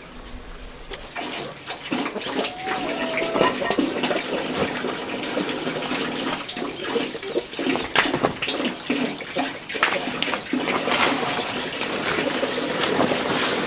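Leaves and a sack rustle as they are handled.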